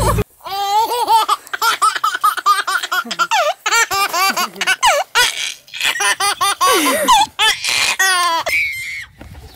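A baby laughs loudly and giggles close by.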